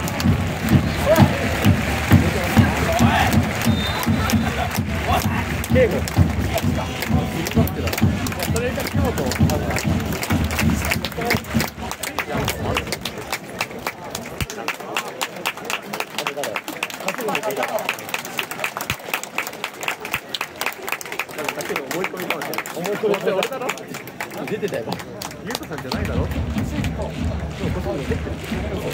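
Fans clap in rhythm.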